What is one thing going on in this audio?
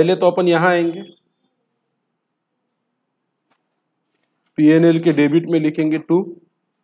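A man speaks calmly and closely into a microphone, with pauses.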